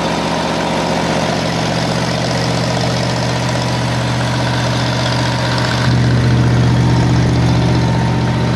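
A generator engine runs with a loud, steady, rattling drone that grows a little louder near the end.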